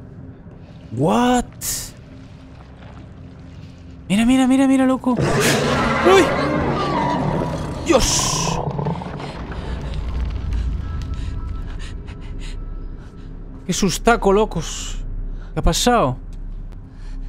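A young man shouts and exclaims in bursts, close to a microphone.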